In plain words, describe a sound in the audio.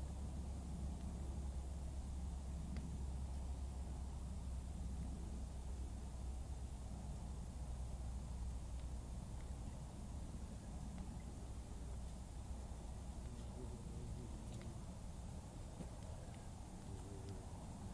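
A small fire crackles and pops softly.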